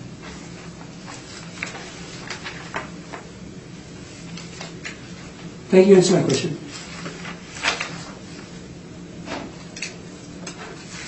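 Papers rustle and shuffle on a table.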